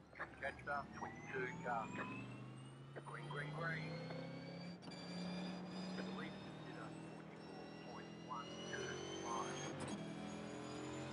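Other race car engines drone nearby.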